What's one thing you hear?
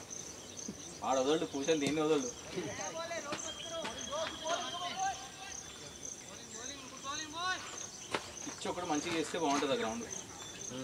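Men call out and chatter across an open field outdoors.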